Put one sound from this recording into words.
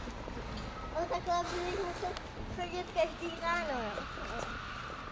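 A small child laughs and squeals.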